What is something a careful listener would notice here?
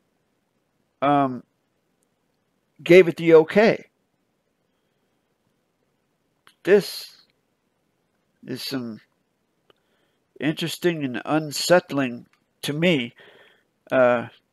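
A man speaks in bursts over an online call, with pauses between phrases.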